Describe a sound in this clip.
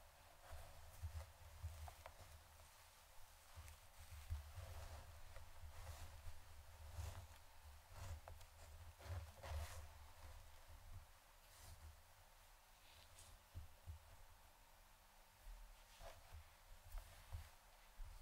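Hair rustles and swishes as hands brush and gather it.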